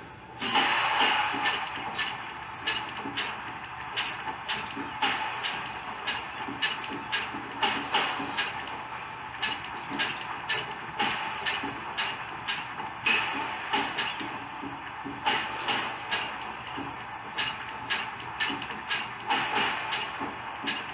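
Sword strikes clash sharply and often through a television's speakers.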